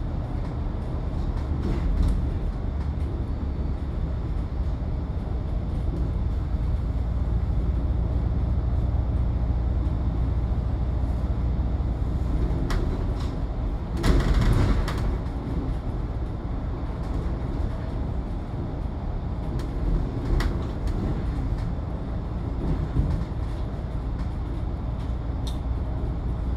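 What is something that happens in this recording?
A bus engine rumbles steadily while driving along a road.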